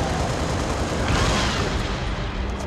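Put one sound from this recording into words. An explosion bursts loudly.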